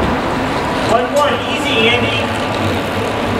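A racing bicycle whirs past close by.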